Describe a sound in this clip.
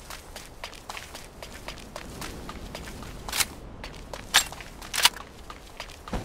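Footsteps run over hard pavement.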